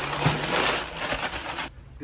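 Powdered concrete pours from a bag into a wheelbarrow.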